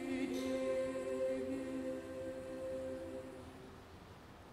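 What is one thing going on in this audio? A choir of young girls sings a sustained chord in a hall and lets it fade away.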